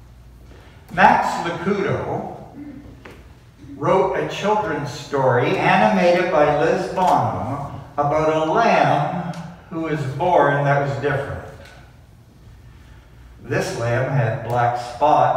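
A man speaks calmly and clearly, reading out in a room with a light echo.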